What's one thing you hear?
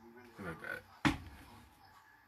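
A shoe is set down on a table with a thump.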